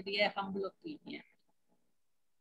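A middle-aged woman speaks calmly through an online call.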